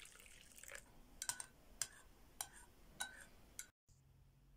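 A spoon clinks against the inside of a cup while stirring.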